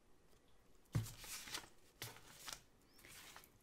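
A sheet of stickers rustles and crinkles as a hand moves it.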